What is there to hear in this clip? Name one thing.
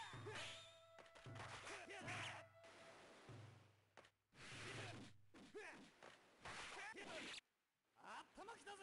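Sword slashes and hits ring out in an arcade fighting game.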